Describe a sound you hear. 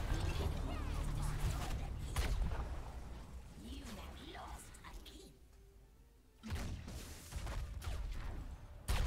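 Game sound effects of fighting and spells burst and clash.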